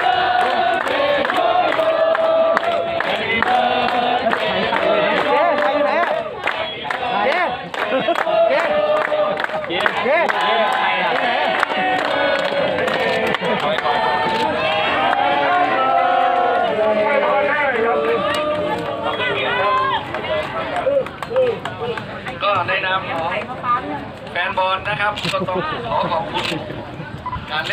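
A crowd of fans sings and chants loudly outdoors.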